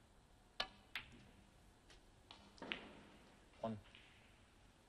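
Snooker balls clack together on the table.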